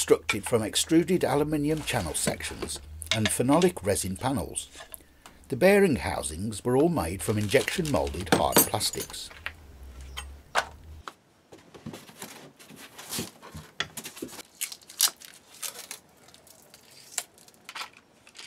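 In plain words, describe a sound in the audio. Metal parts clink and clatter against each other.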